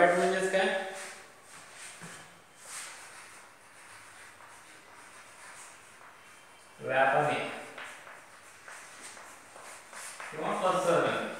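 A man speaks calmly nearby in a slightly echoing room.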